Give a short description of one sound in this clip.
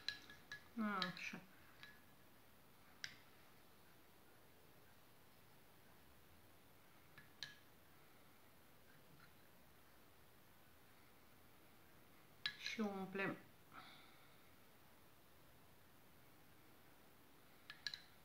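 Plastic bottle caps click lightly against a table now and then.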